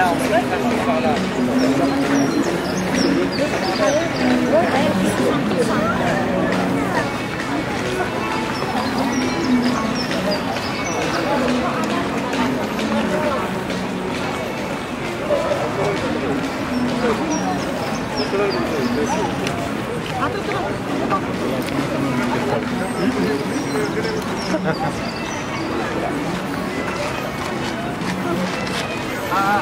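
A crowd of men, women and children chatter nearby outdoors.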